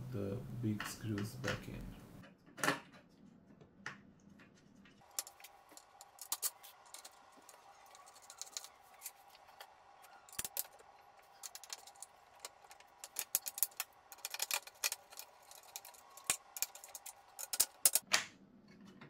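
Small wooden and plastic parts knock and click as hands handle them.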